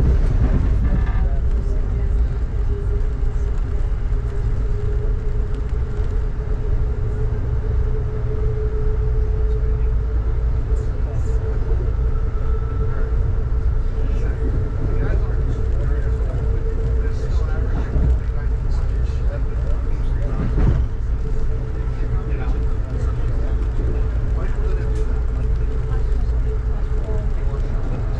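Raindrops patter on a train window.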